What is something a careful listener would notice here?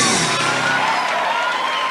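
A band plays music on stage.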